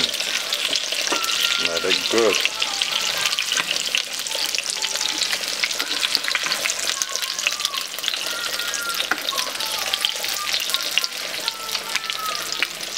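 Oil sizzles and crackles steadily in a hot pan.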